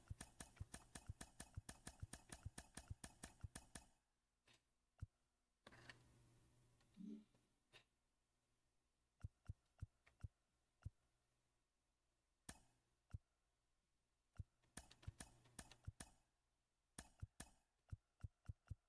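Game menu clicks tick as a selection moves through a list.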